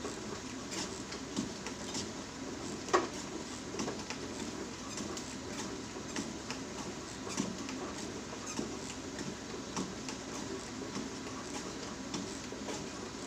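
Footsteps thud steadily on a running treadmill.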